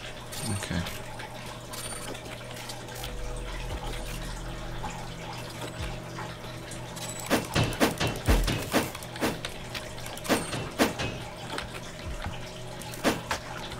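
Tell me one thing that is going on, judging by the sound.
Footsteps patter on soft ground.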